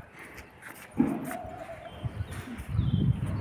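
A mattress rustles and bumps as a woman handles it.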